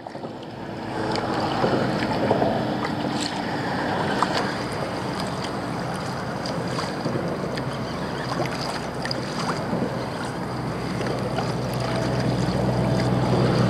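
Wind rumbles across the open water.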